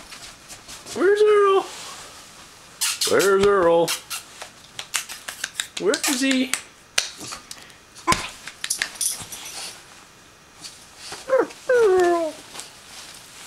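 A puppy whines and yelps in short high cries.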